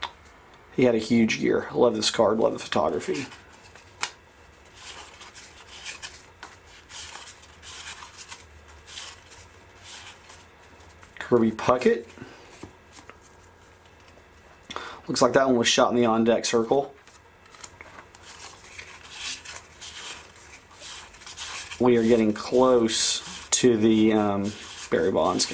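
Trading cards flick and rustle as they are shuffled through by hand.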